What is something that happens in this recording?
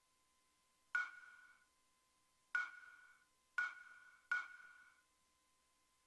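A game menu chimes with short, bright ringing tones.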